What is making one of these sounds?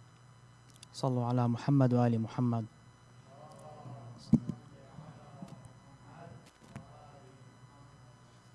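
A young man speaks into a microphone in a calm voice.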